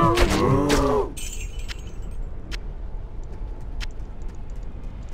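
Loot items drop with soft clinks.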